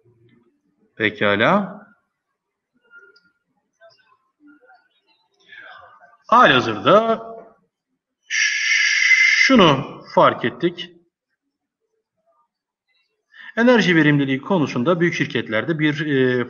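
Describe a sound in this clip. A man speaks calmly over an online call, in bursts with pauses.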